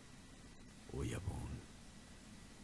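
A man speaks in a low, quiet voice.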